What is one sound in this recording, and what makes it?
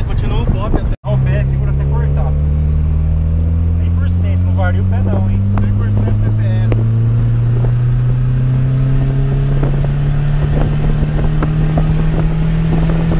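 A car engine hums and slowly rises in pitch as the car speeds up.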